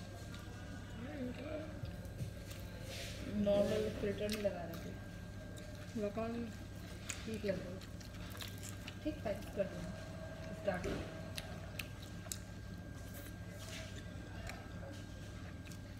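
A young woman chews and smacks her lips as she eats.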